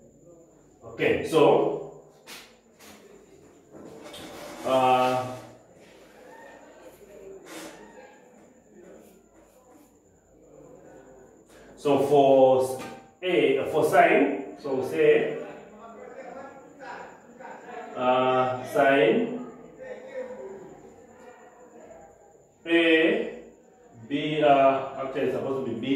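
A man speaks calmly and clearly, pausing often.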